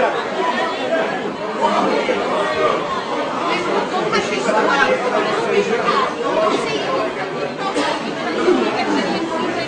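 A crowd of men and women talk and shout over one another in a large echoing hall.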